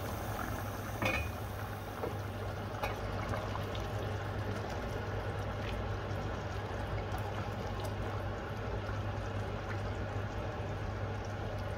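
A spoon scrapes and clinks against a metal pot.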